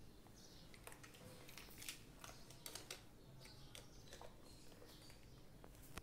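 Electric switches click on and off.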